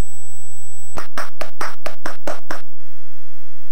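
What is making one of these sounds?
A short electronic chime jingles for a correct answer.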